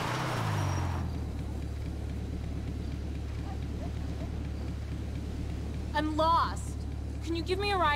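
A motorbike idles with a low rumble.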